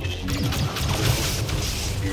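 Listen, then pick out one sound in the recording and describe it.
A lightsaber hums and clashes with sharp crackles.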